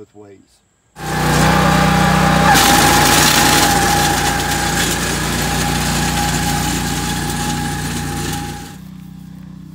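An engine runs loudly and steadily close by.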